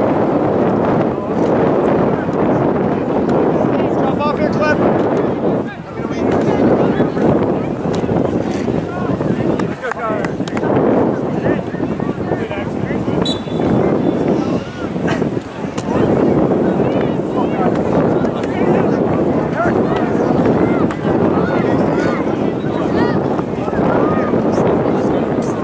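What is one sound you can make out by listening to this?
Young players shout and call to each other outdoors.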